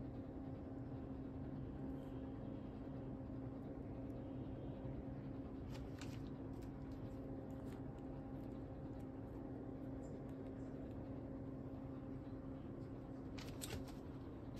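A plastic record sleeve crinkles as it is handled.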